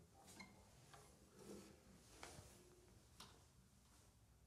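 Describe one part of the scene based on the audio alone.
A guitar bumps and its strings ring softly as it is handled.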